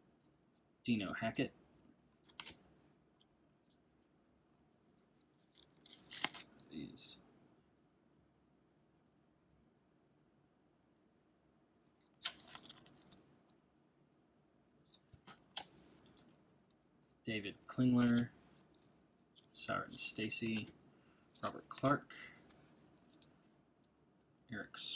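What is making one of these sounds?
Stiff trading cards slide and flick against each other as a hand shuffles through a stack.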